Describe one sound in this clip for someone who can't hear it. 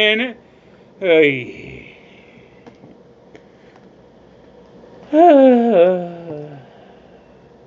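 A man groans in exasperation.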